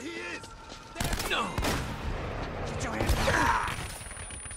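Gunshots crack and echo in quick bursts.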